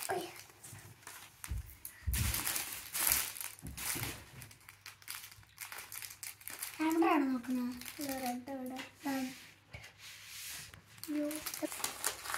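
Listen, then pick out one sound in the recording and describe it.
Felt-tip pens clatter and rattle as a child rummages through them.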